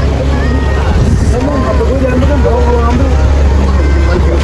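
Several people chatter nearby.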